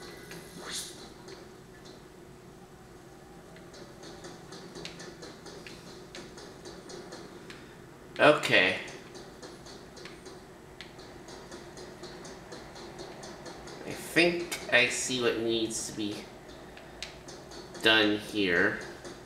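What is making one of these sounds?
Game music plays through a television speaker.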